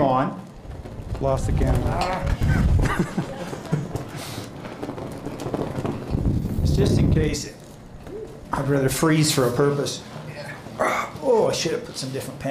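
An elderly man speaks close to the microphone.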